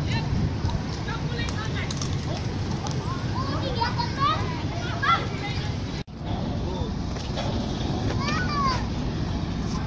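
Children shout and call out while playing outdoors.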